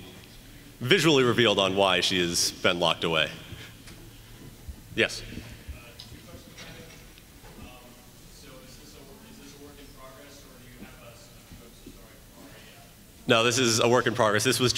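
A young man speaks with animation through a loudspeaker in a large echoing hall.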